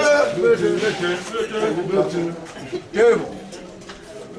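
Men talk loudly close by.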